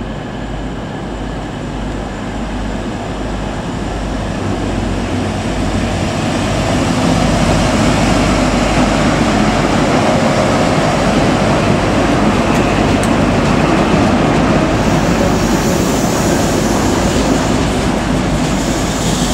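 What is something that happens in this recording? A diesel train engine roars, growing louder as it approaches.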